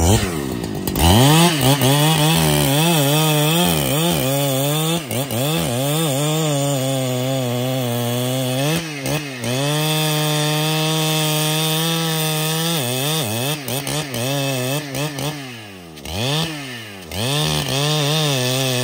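A chainsaw engine roars and revs while cutting into a tree trunk.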